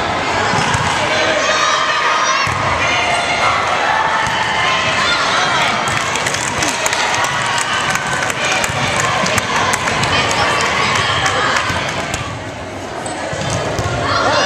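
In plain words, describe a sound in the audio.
A volleyball thumps off players' arms.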